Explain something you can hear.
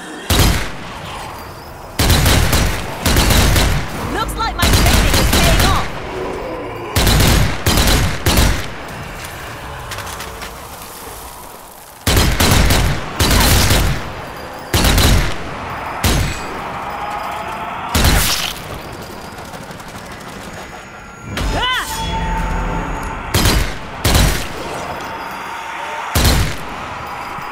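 Automatic rifle fire rattles in short, loud bursts.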